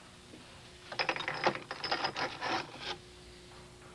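Small metal parts rattle and clink as a hand rummages through a wooden drawer.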